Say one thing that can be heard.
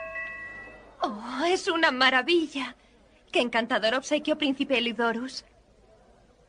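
A young woman calls out in a high, loud voice nearby.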